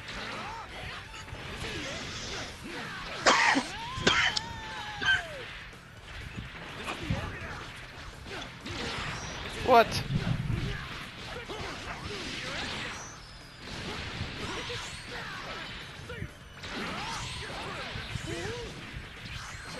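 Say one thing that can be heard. Punches and kicks land with sharp impact sounds in a fighting game.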